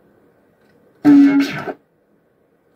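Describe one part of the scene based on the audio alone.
An arcade game's menu plays a short loud chime.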